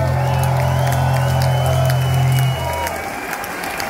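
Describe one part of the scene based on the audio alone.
A live band plays loudly with a heavy bass line.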